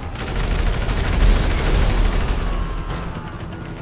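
A car explodes with a deep boom.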